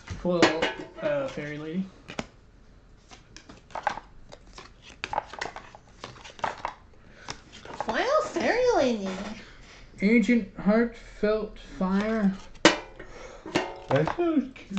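Playing cards tap and slide on a hard box lid.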